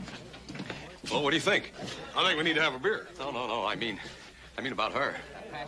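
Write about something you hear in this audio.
A young man talks loudly and excitedly nearby.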